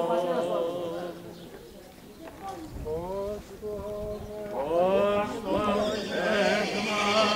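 A middle-aged man chants a prayer in a steady singing voice, close by outdoors.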